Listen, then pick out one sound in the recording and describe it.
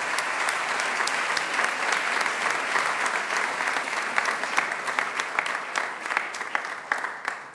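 A crowd applauds steadily in a large room, thinning out toward the end.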